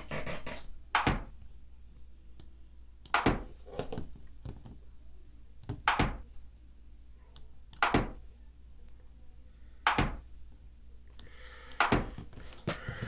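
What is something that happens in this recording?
Short wooden clicks sound as chess pieces are moved, one at a time.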